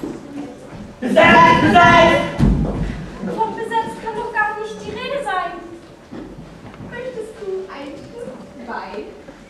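A young woman speaks loudly and expressively on a stage in an echoing hall.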